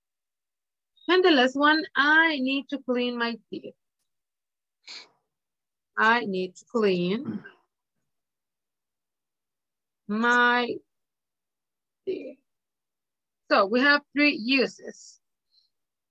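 A woman speaks slowly and clearly through an online call, dictating in short phrases.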